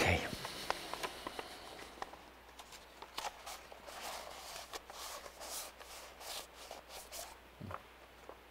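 A paper cup rustles and taps close by.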